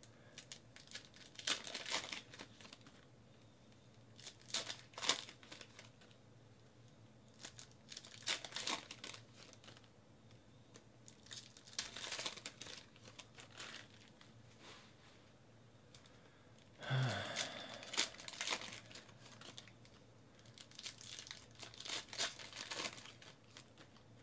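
Plastic wrappers crinkle and tear as card packs are opened.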